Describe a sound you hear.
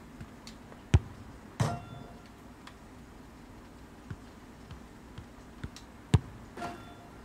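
A football is struck with a firm thud.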